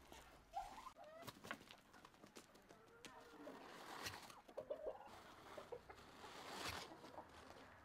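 A turkey puffs and rustles its feathers.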